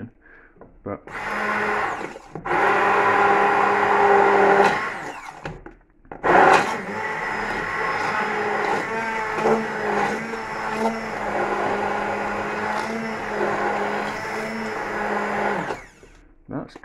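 A hand blender whirs loudly, churning liquid in a pan.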